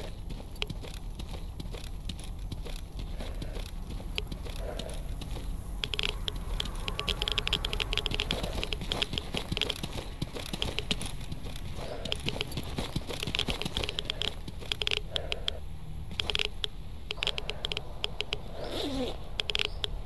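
Footsteps crunch through grass and brush at a steady pace.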